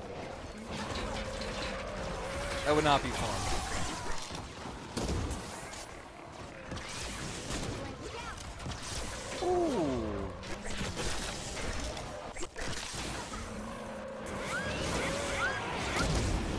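Game weapons fire and swing with clanging impacts.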